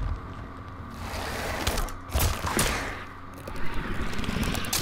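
A bladed tail stabs through flesh with wet, tearing impacts.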